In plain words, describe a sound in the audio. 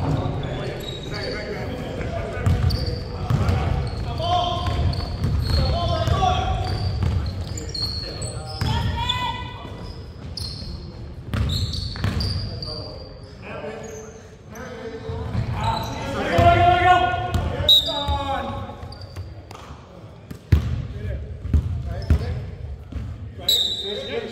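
Men shout and call out during a game in a large echoing gym.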